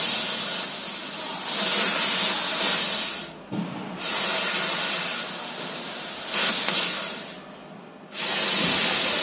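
A laser cutting head hisses loudly as it cuts, stopping briefly now and then.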